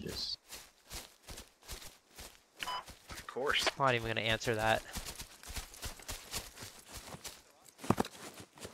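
Footsteps swish through grass at a steady walking pace.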